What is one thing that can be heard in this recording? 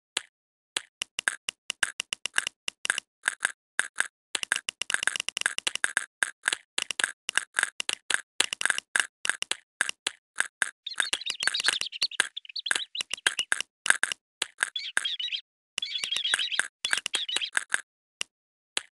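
Short bright electronic blips pop in quick succession as a chick gobbles up dots.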